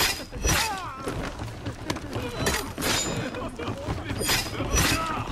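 Men grunt and cry out in pain during a fight.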